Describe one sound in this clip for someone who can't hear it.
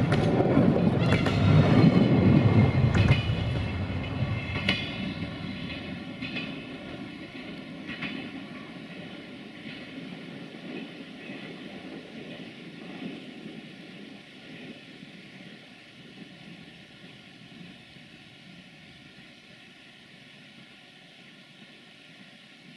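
A train roars past close by and fades into the distance.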